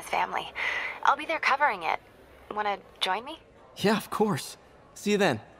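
A young woman speaks over a phone.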